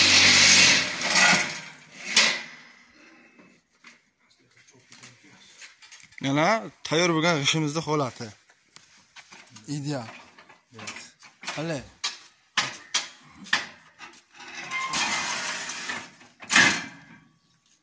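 A block-making machine clanks and rattles.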